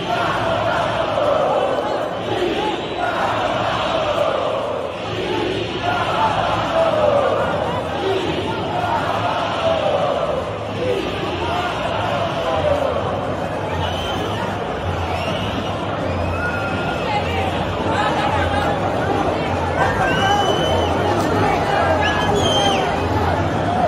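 A large stadium crowd sings and chants loudly in an echoing arena.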